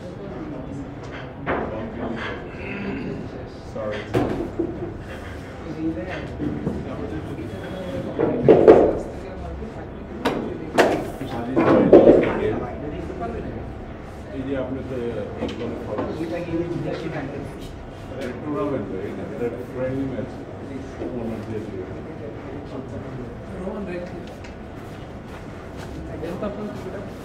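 Billiard balls clack against each other in sharp, scattered knocks.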